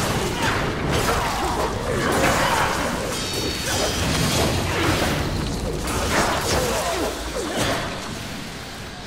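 Weapons clash and strike repeatedly in a fast fight.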